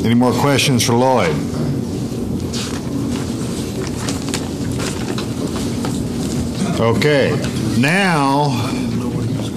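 A man speaks into a microphone, heard through loudspeakers in a room.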